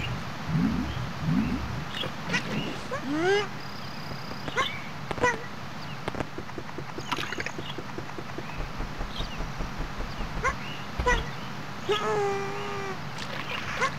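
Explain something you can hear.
Splashes of water sound as a game character swims.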